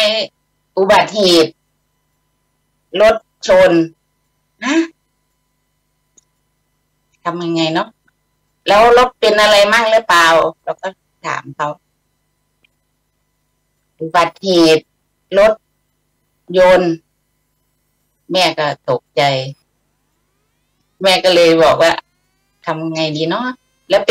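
A middle-aged woman speaks calmly, in short phrases with pauses, heard through an online call.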